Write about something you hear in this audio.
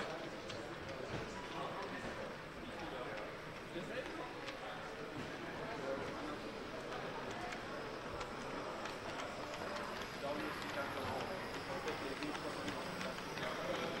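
A model train rumbles and clicks along its track.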